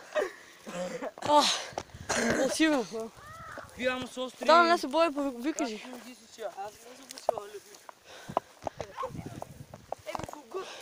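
A teenage boy talks with animation close by.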